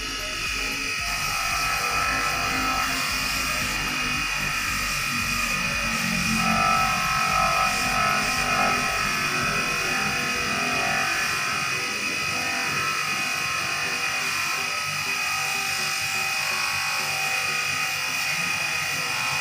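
An electric buffing wheel motor whirs steadily.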